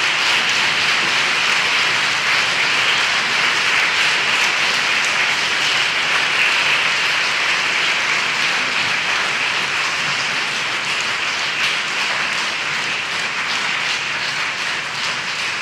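An audience applauds steadily in a large echoing hall.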